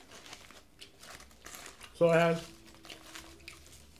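Foil crinkles as it is unwrapped.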